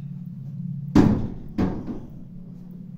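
A door bumps with a dull thud.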